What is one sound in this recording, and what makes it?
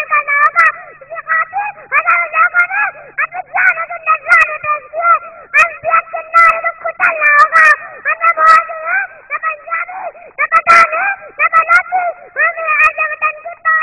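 A young girl speaks with animation through a microphone and loudspeakers.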